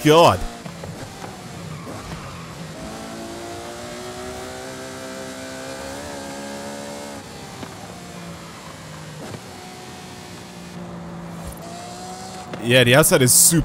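A car engine hums steadily, rising and falling in pitch as it speeds up and slows down.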